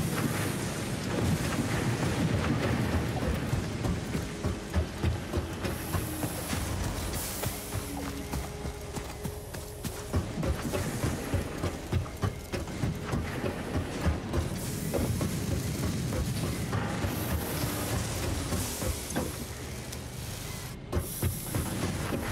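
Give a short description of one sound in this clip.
Footsteps thud steadily on a hard metal floor.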